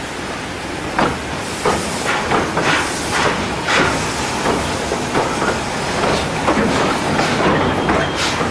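A steam locomotive puffs in sharp, quickening bursts of exhaust.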